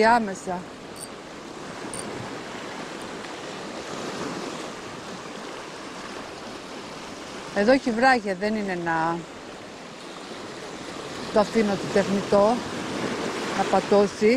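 Waves wash and splash over rocks close by.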